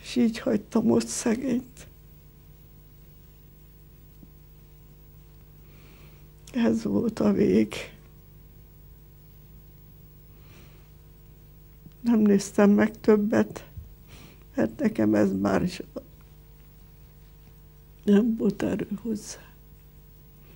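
An elderly woman speaks slowly and quietly close by, with long pauses.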